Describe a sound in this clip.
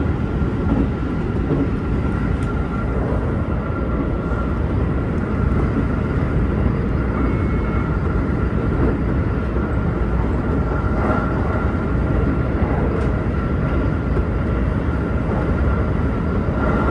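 A train's motor hums with a steady whine.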